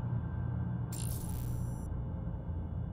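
A soft menu chime sounds.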